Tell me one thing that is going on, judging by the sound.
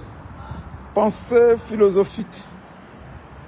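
A middle-aged man speaks briefly and close up, outdoors.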